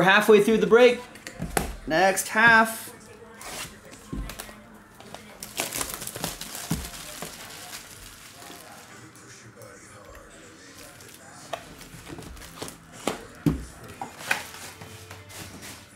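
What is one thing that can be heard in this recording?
Cardboard boxes knock and slide on a table.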